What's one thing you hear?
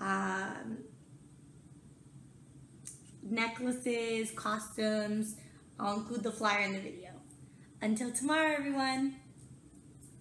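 A young woman speaks animatedly and close up, as if into a device's microphone.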